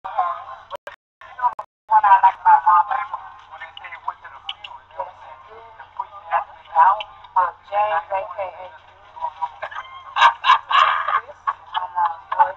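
Men talk and joke casually nearby.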